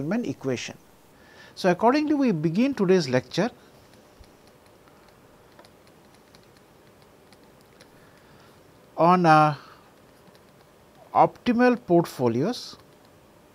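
A man speaks calmly and clearly into a close microphone, with pauses.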